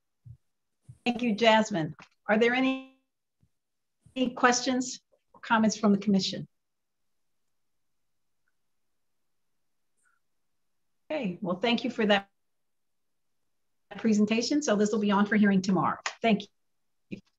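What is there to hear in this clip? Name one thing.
A young woman speaks calmly through an online call, with pauses.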